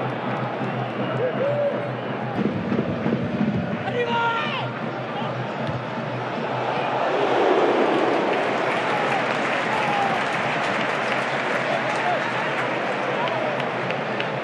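A large stadium crowd roars and chants throughout.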